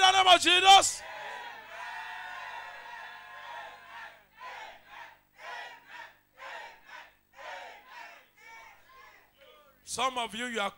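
A woman prays aloud with fervour.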